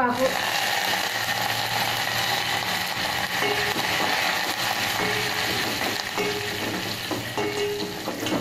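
Oil sizzles and crackles in a pot.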